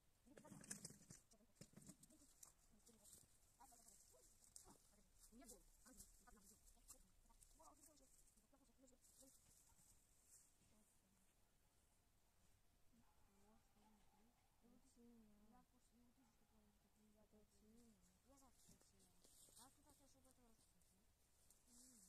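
A child talks at a distance outdoors.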